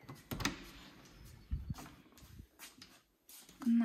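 A metal door handle clicks as it is pressed down.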